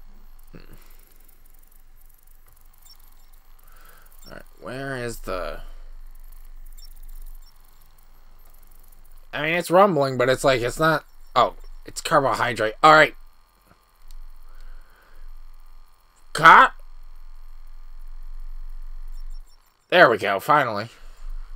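A handheld electronic decoder hums and chirps.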